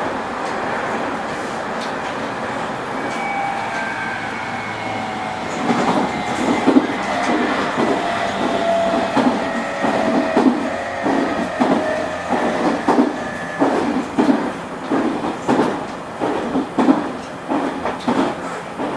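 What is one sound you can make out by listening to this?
A train idles with a steady electric hum.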